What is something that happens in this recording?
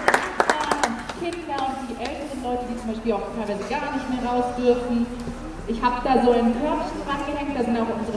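A young woman sings into a microphone, heard through a loudspeaker outdoors.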